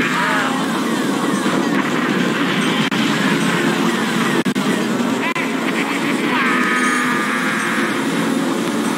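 Kart engines buzz steadily in a racing game.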